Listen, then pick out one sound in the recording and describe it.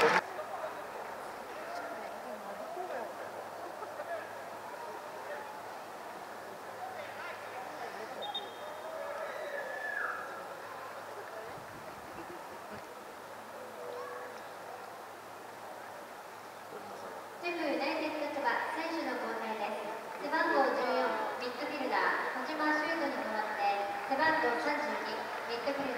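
A large crowd murmurs steadily across an open stadium.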